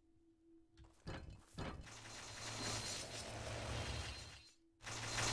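A magical energy ball roars and hisses.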